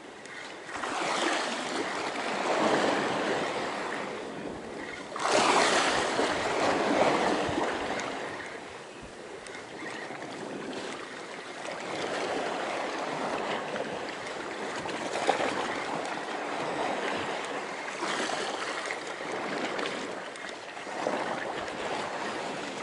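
A fishing reel whirs as its handle is wound.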